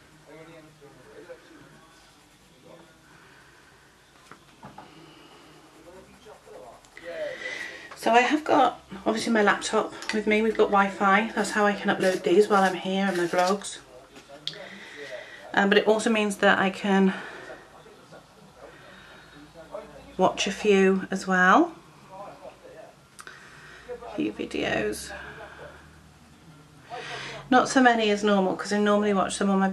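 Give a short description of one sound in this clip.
A pencil scratches and rubs on paper.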